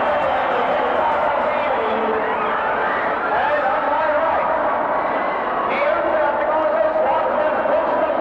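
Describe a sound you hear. A man announces loudly over a loudspeaker.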